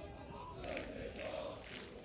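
A football is kicked on a grass pitch.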